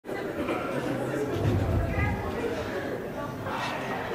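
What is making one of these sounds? A chair scrapes and knocks on a stage floor.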